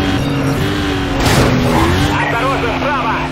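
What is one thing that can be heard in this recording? A car crashes through a barrier with a loud crunch.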